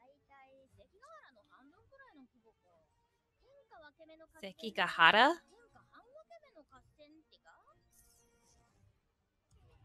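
A young woman speaks softly and reacts close to a microphone.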